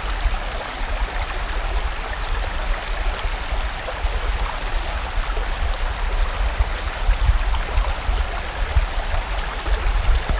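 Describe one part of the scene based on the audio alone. A stream rushes and gurgles over rocks close by.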